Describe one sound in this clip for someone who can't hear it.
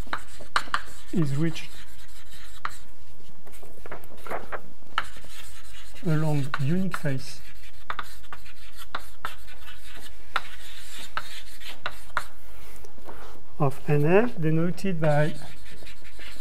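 A man speaks calmly in short phrases through a microphone.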